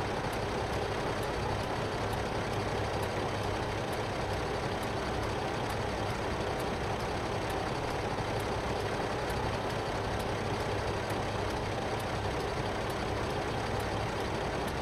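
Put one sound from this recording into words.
A trailer rattles along behind a tractor.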